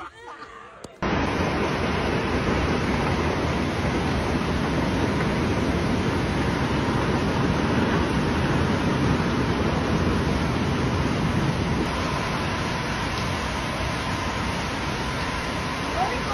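Heavy rain pours down steadily, drumming on a roof outdoors.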